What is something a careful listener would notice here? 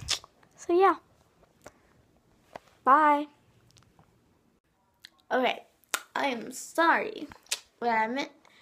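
A young girl talks and sings close to a phone microphone in short, animated bursts.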